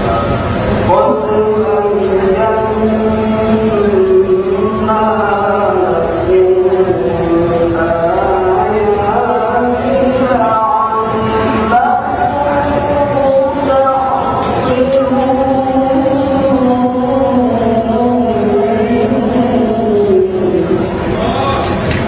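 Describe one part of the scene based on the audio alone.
A young man chants melodically into a microphone, with long held notes.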